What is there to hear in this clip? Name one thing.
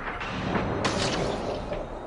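A crackling energy blast bursts close by.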